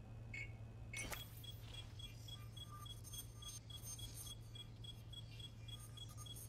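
An electronic scanner beeps and whirs.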